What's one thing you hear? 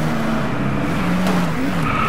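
A car scrapes along a metal barrier.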